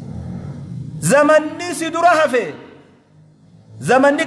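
A man speaks loudly and with emphasis through a microphone in an echoing room.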